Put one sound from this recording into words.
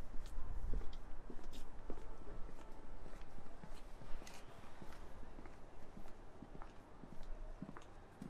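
Footsteps pass close by on a pavement.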